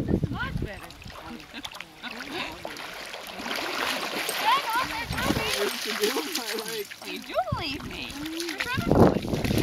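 A woman talks to a dog in an encouraging voice, close by.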